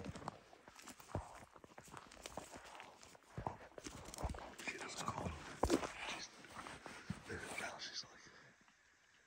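A man speaks excitedly in a low voice close by.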